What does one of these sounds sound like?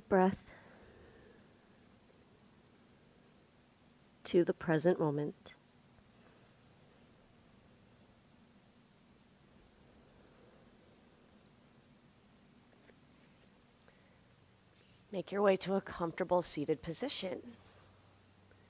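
A young woman speaks calmly and softly close to a microphone.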